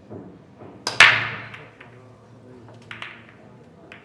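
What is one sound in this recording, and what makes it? Billiard balls scatter and clack loudly against each other and the cushions.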